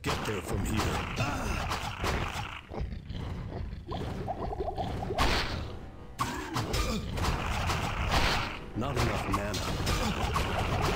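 Weapons strike and clash in a close fight.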